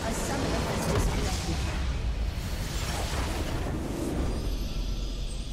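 Game spell effects burst and crash in a loud fight.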